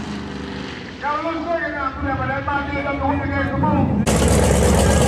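A racing car's engine whines far off down the track.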